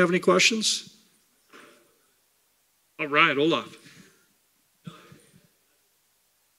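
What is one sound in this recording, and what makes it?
A man speaks through a microphone in a large room, in short bursts.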